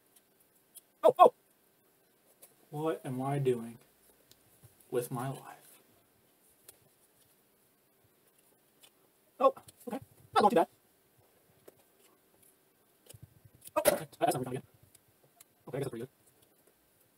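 A young man speaks in short, strained bursts close by.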